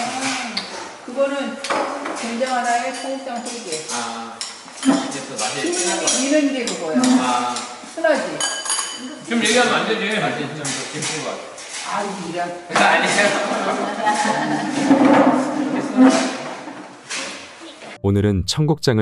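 Cutlery and dishes clink.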